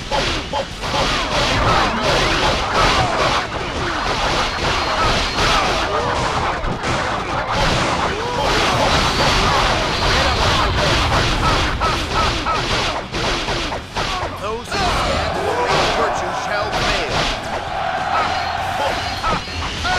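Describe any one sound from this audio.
Swords clash and strike in a busy battle.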